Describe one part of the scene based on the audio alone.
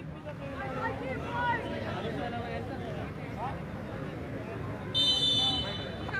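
A crowd of young men chatters nearby outdoors.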